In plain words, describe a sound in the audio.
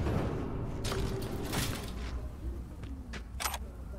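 A metal lift gate rattles open.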